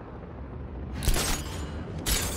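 A grapnel gun fires with a sharp bang.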